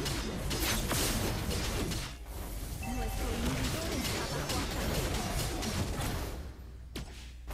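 Fantasy battle effects clash and blast loudly.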